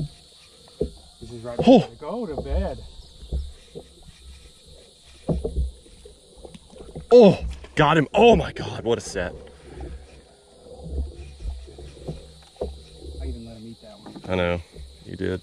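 Water rushes and gurgles in a low, muffled way underwater.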